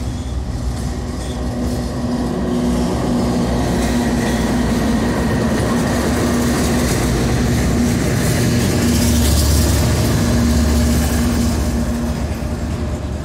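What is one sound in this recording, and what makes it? Diesel locomotive engines rumble loudly close by.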